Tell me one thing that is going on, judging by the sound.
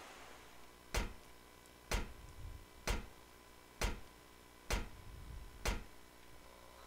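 Footsteps clang on metal stairs in a slow, even rhythm.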